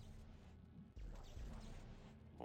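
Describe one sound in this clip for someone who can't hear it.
A weapon fires with a sharp energy blast.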